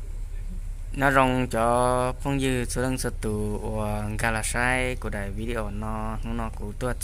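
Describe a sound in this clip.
An elderly man speaks close by.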